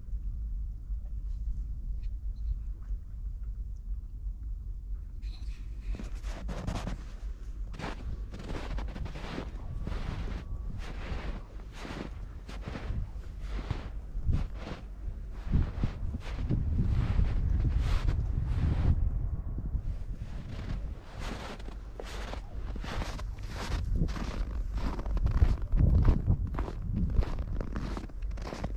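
Wind rumbles across the open outdoors.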